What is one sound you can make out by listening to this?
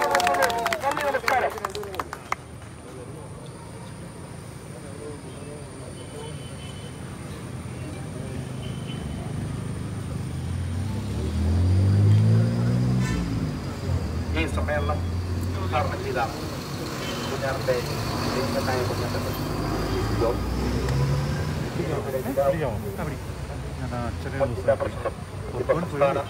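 A crowd of men murmurs and talks nearby.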